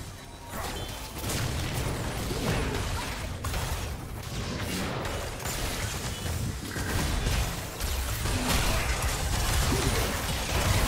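Spell effects and weapon hits clash and crackle in a fast battle.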